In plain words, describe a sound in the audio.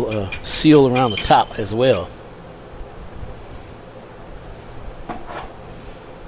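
Metal fittings clink softly as they are handled.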